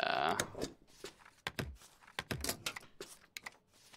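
A rubber stamp thumps onto paper.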